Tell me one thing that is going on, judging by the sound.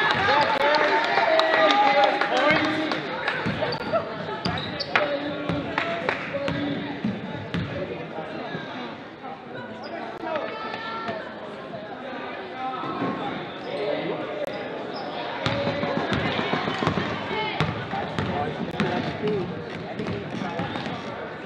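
A basketball bounces on a hard gym floor.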